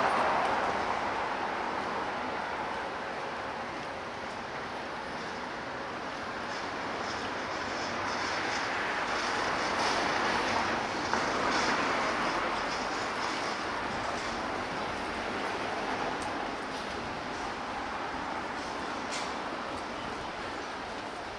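Traffic hums steadily along a nearby city street.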